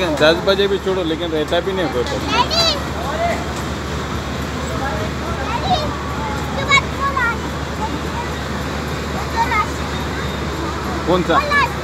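Young children babble and squeal nearby.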